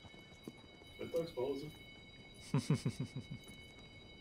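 A horse snorts.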